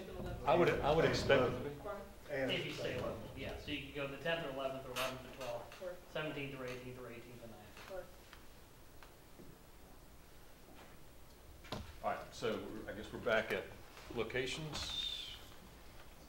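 A man speaks calmly at a moderate distance.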